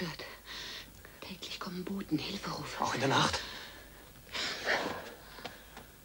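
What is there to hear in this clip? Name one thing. A woman speaks with agitation close by.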